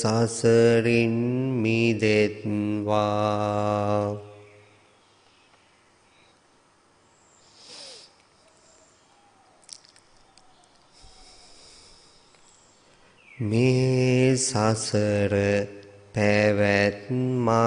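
A man chants slowly in a deep, steady voice through a microphone.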